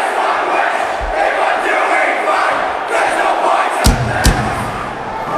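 Drums thump.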